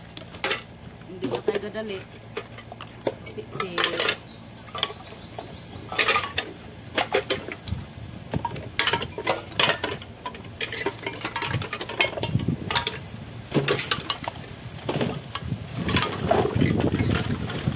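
Empty tin cans clatter and clink as they are sorted.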